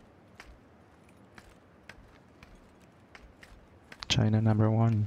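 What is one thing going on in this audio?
Footsteps patter quickly on a road.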